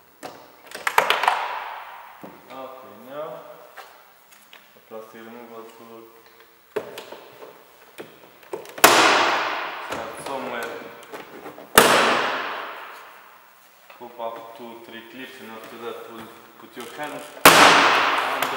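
Plastic clips snap loudly as a car door panel is pried loose.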